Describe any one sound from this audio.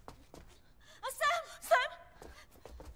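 A young woman shouts a name loudly and urgently.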